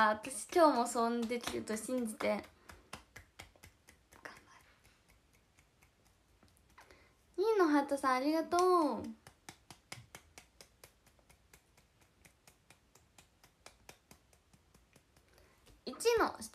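Hands clap softly in a steady rhythm.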